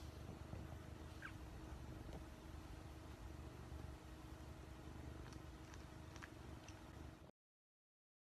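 A cat purrs softly up close.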